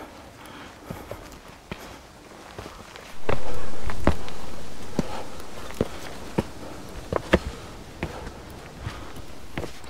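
Footsteps crunch on a rocky trail.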